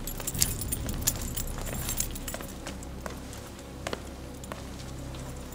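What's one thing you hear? Metal staffs clink and tap against the floor.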